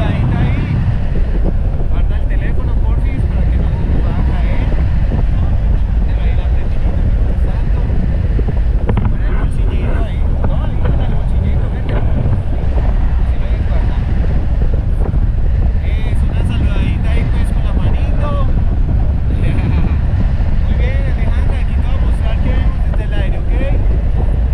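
A young woman talks and laughs with excitement close by, over the wind.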